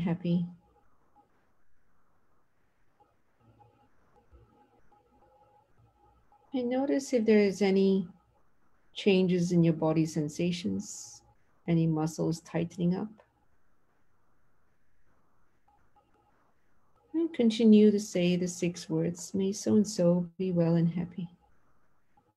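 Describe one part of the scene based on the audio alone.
A middle-aged woman speaks calmly and slowly over an online call, with long pauses.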